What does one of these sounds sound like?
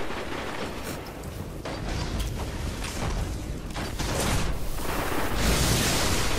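Energy blasts crackle and burst with electric zaps.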